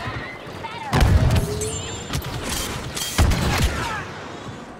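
Heavy explosions boom.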